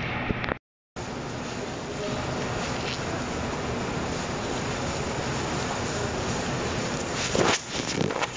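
Plastic gloves rustle and crinkle as hands rub together.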